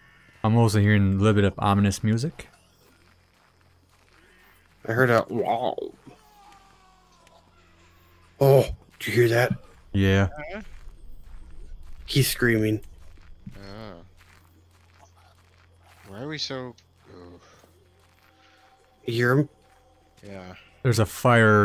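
Footsteps rustle through dry grass and undergrowth.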